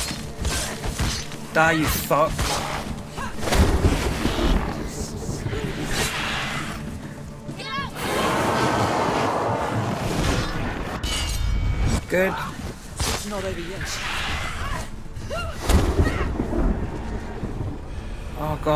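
Blades swish and clash in a fierce fight.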